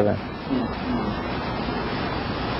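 A middle-aged man chuckles softly, close to a microphone.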